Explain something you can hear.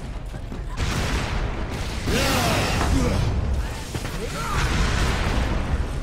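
Jets roar in bursts.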